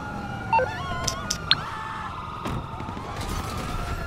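A car door shuts.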